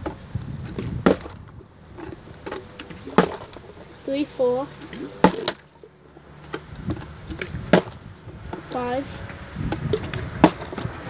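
A plastic bottle thumps as it lands on a hard surface.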